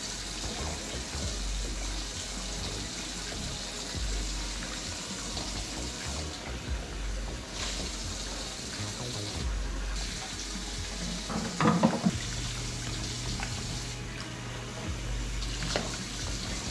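Water splashes and sloshes as dishes are washed in a sink.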